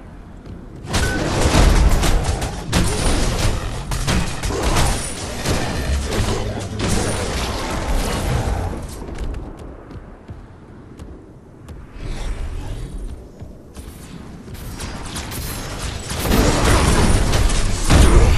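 Blasts and magic impacts crash and burst in a fight.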